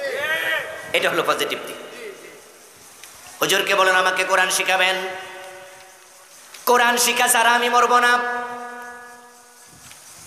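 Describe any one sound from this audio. A middle-aged man chants loudly and melodically into a microphone, with an echo.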